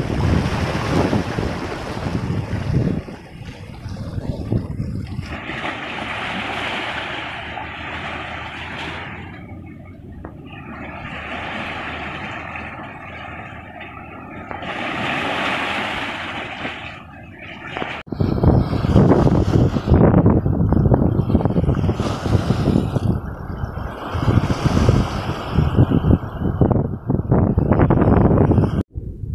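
Waves wash and splash over rocks close by.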